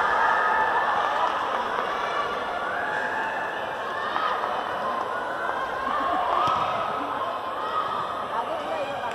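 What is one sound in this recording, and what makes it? A large indoor crowd cheers and chatters in an echoing hall.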